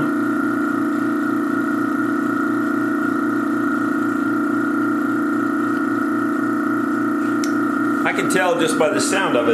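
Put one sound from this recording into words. A vacuum pump hums steadily.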